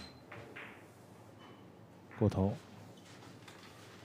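Snooker balls knock together with a click.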